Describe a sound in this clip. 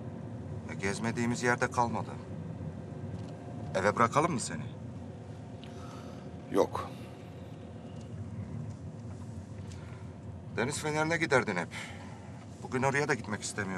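A car engine hums low and steady.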